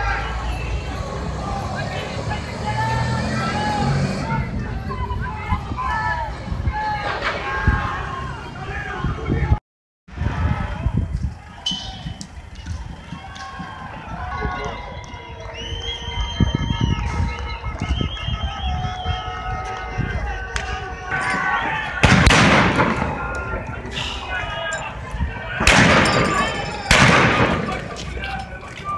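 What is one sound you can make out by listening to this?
A crowd of people shouts and yells outdoors.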